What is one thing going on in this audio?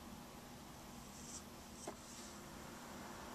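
A metal blade scrapes softly against clay.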